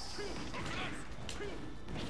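A fireball whooshes in a fighting game.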